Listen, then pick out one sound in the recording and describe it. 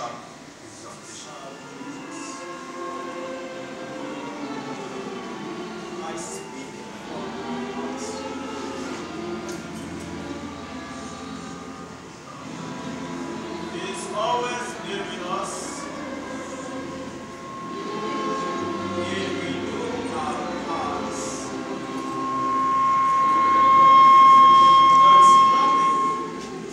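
A choir of men and women sings together in a reverberant hall.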